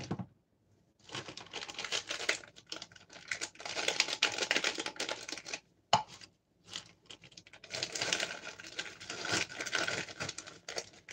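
A plastic bag crinkles and rustles loudly as it is handled.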